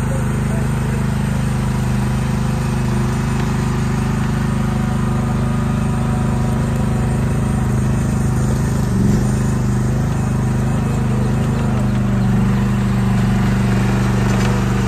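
Tracks of a small excavator clank and squeak as it moves.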